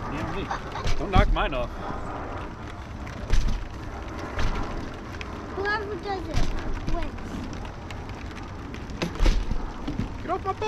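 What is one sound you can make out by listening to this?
A young child talks in a high voice nearby.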